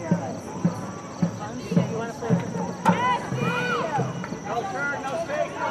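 Spectators shout and cheer from the stands outdoors.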